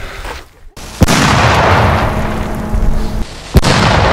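A firework bangs sharply.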